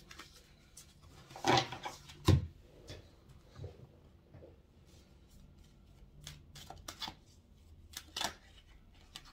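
Paper cards rustle and tap as hands handle them.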